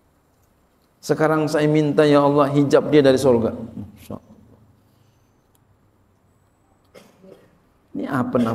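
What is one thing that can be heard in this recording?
A middle-aged man speaks calmly and with expression through a microphone.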